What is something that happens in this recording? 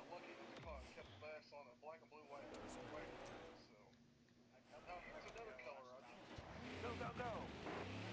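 A race car engine roars at speed.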